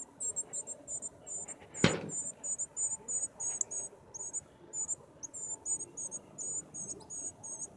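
Small birds chirp rapidly and steadily in the bushes close by.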